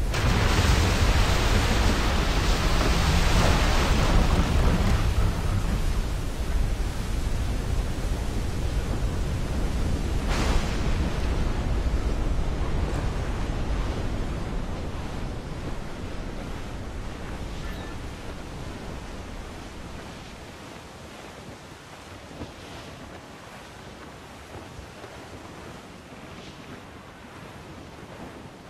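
Waves crash against a sailing ship's hull.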